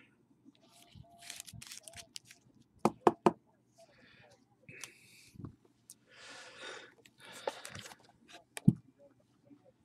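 Cardboard boxes knock and slide on a table.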